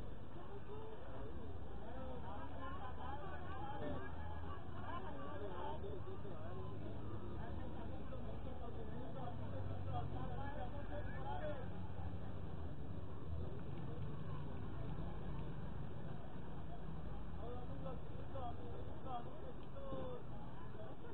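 A crowd of people chatters nearby, with many voices murmuring at once.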